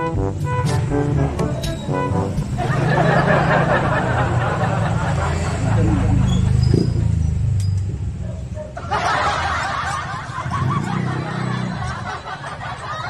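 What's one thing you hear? A motorcycle engine idles close by with a low steady rumble.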